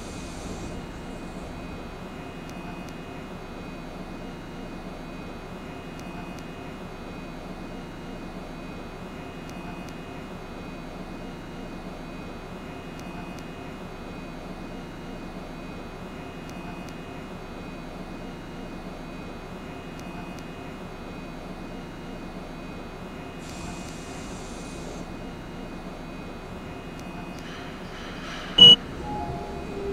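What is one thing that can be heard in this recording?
A train rumbles steadily through a tunnel.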